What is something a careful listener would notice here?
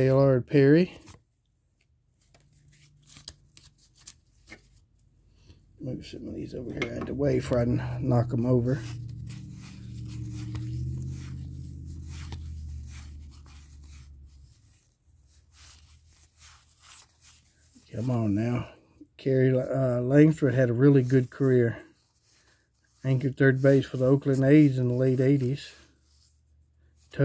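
Stiff paper cards rustle and flick against each other as they are sorted by hand.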